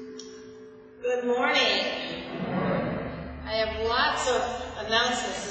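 A woman speaks into a microphone in a large echoing room.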